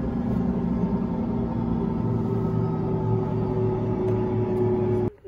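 A helicopter engine hums and whines steadily from inside the cabin.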